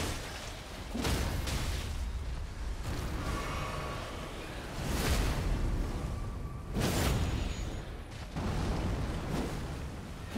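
Water splashes heavily as a game fighter moves through it.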